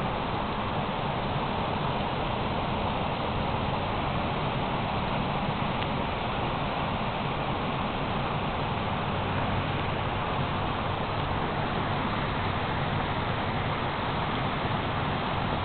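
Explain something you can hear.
Water rushes and splashes steadily over a weir.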